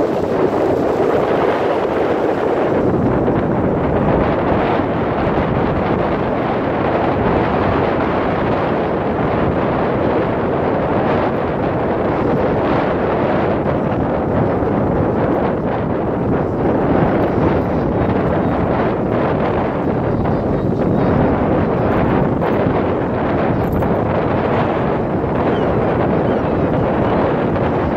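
Strong wind rumbles and blows outdoors.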